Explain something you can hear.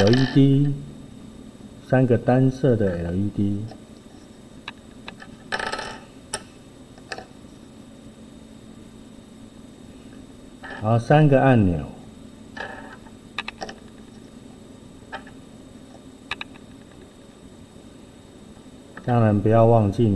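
Small circuit boards are set down on a table with light taps.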